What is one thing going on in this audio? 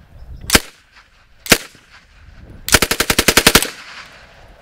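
A submachine gun fires two single shots and then a rapid burst outdoors.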